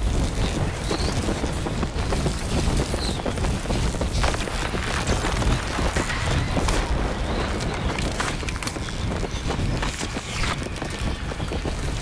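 Wind rushes loudly during a fall.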